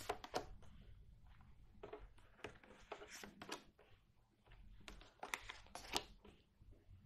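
Playing cards slide and tap softly on a wooden table.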